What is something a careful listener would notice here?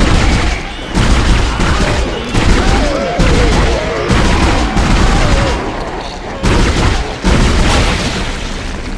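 A gun fires in heavy, booming bursts.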